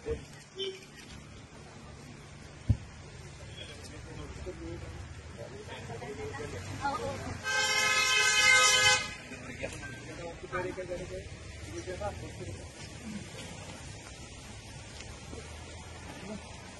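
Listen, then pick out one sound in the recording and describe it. Several men talk casually nearby, outdoors.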